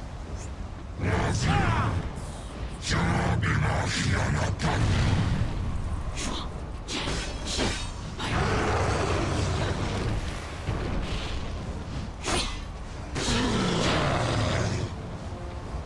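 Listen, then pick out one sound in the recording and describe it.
A giant creature roars and growls loudly.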